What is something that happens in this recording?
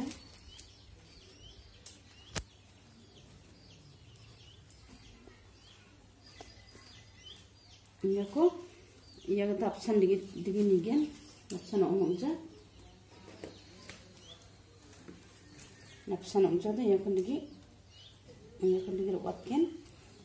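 Plastic strips rustle and click softly as they are woven by hand.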